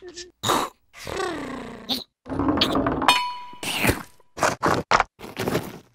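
A cartoon creature mumbles and giggles in a squeaky voice.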